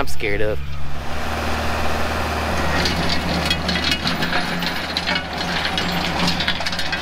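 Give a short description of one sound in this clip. A tractor engine runs steadily as a tiller churns the soil.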